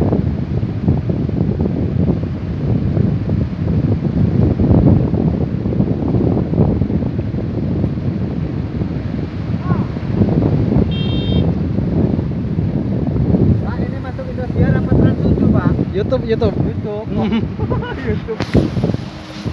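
Wind blows strongly across an open space outdoors.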